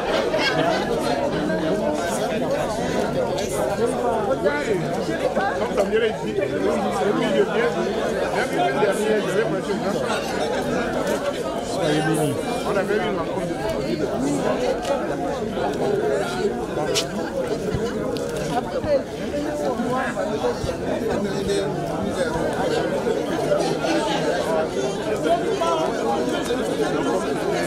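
A crowd of men and women sing together outdoors.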